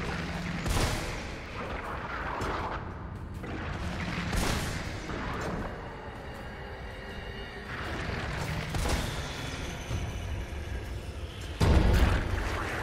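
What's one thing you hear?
Shotgun blasts boom and echo.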